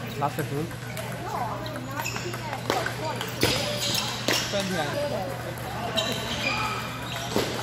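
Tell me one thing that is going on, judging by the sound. A table tennis ball clicks sharply back and forth off paddles and a table.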